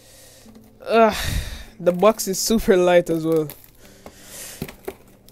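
A blade slices and tears through packing tape on a cardboard box.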